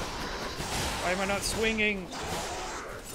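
A creature growls and screeches.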